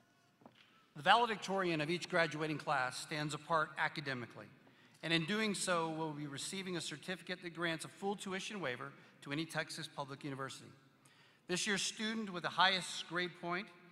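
A man speaks steadily through a microphone, echoing in a large hall.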